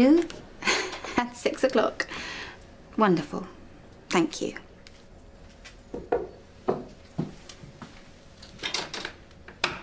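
A woman talks on a phone in a lively, cheerful way, close by.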